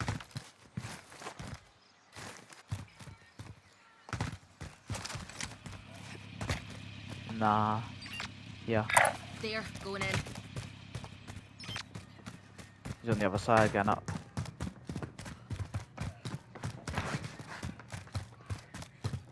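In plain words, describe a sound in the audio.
Footsteps run quickly over hard ground and up stairs.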